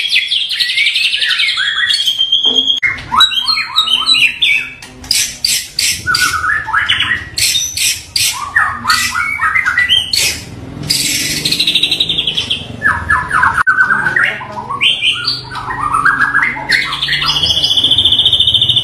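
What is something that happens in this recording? A songbird sings loud, varied whistles, trills and chirps close by.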